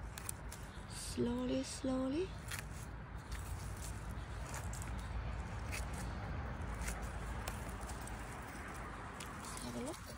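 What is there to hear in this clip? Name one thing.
A knife cuts through mushroom stems with soft crunches.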